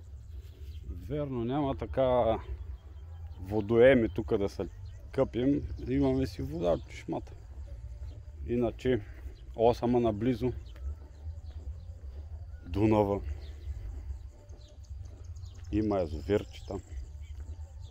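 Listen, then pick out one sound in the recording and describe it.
A middle-aged man talks calmly and close by, in short phrases.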